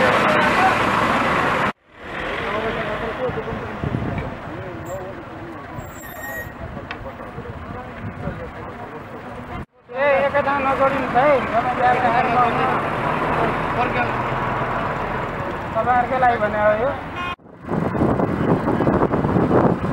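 Traffic rumbles by on a busy road outdoors.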